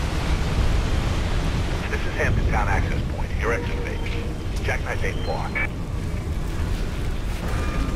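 Water pours down in streams and splashes far below.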